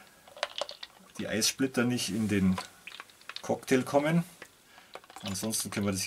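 Liquid pours from a shaker into a glass.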